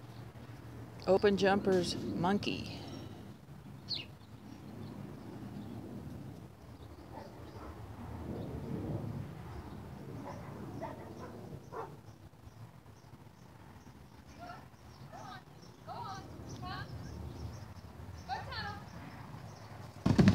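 A woman calls out to a dog in the distance.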